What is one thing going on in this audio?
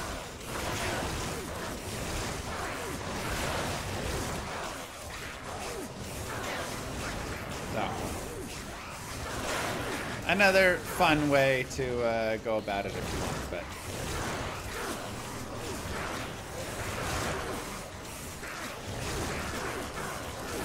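Game combat sounds of spells and blasts clash and roar.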